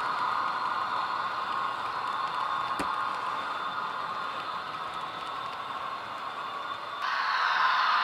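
A model train rolls past on the track with a steady whirring rumble.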